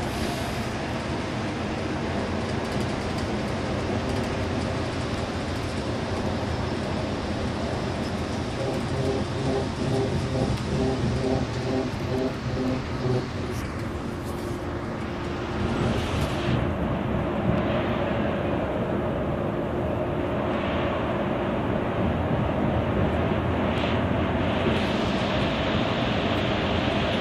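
Tyres roar on the road, echoing louder inside a tunnel.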